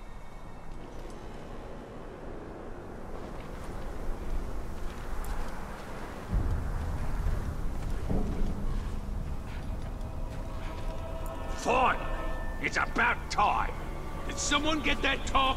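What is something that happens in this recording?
Footsteps crunch softly on dirt and gravel.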